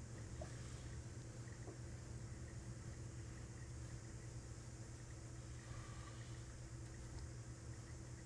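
Hands smooth and rustle heavy cloth.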